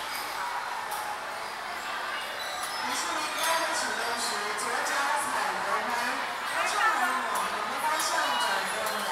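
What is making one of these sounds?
A crowd of children and adults chatters and shouts in a large echoing hall.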